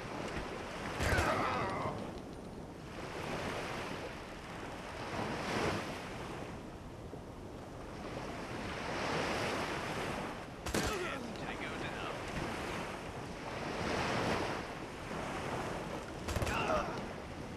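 Gunshots crack sharply a few times.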